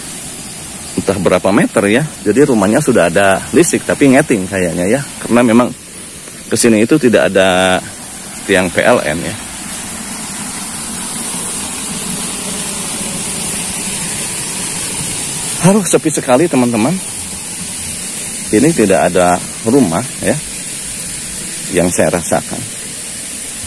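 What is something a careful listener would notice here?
A man speaks close by, calmly narrating.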